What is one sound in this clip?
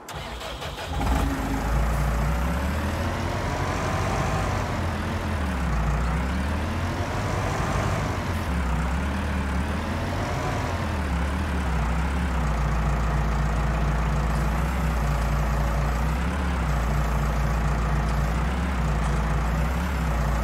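A tractor engine revs up and down as it drives.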